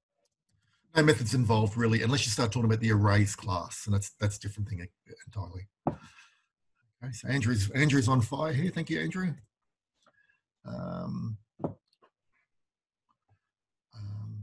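An elderly man speaks calmly over an online call, in bursts with pauses.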